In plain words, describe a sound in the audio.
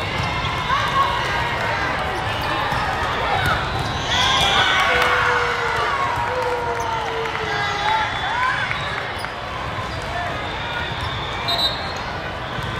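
A ball is struck with sharp slaps.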